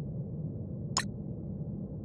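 A game interface gives a short click as a menu opens.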